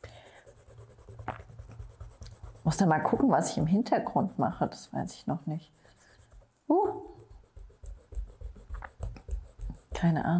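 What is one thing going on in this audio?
A coloured pencil scratches across paper.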